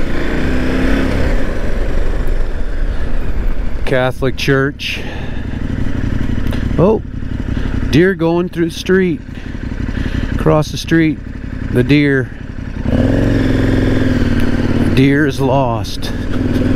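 A motorcycle engine rumbles up close, rising and falling as the bike pulls away and slows.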